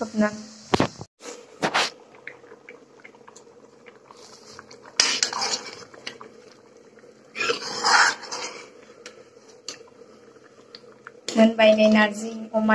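Liquid bubbles and sizzles in a pan.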